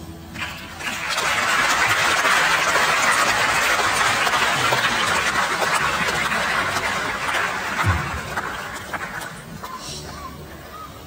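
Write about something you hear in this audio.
An audience claps and cheers loudly in a large hall.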